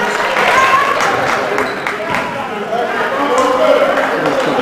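A basketball bounces on the court floor.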